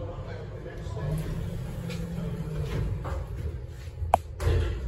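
Elevator doors slide shut with a low rumble.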